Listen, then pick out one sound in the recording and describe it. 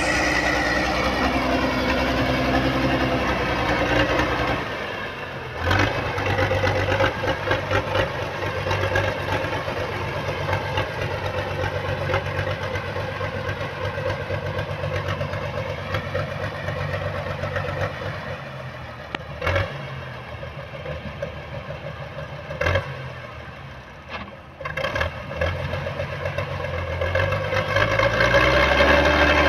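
Tractor engines rumble steadily nearby.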